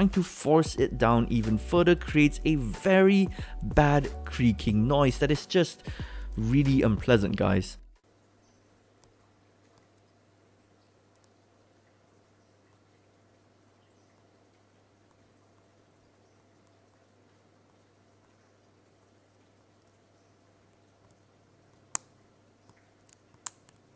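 Fingers tap and click on laptop keys.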